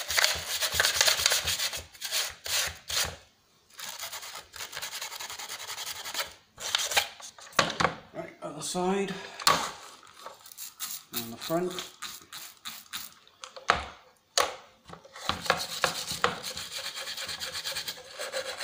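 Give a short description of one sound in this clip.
Steel wool scrubs and scrapes hard plastic in quick, rough strokes.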